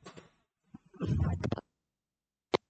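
Paper rustles as a page is handled.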